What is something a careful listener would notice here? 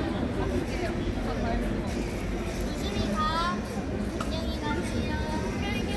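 Music plays from a loudspeaker nearby.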